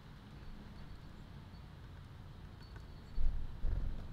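A small bird flutters its wings as it takes off.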